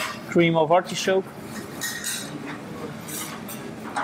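A spoon scrapes against a plate.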